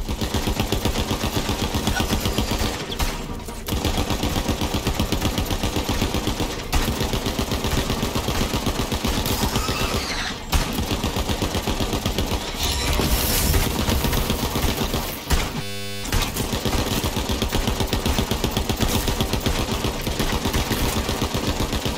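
A rapid-firing gun shoots in fast bursts.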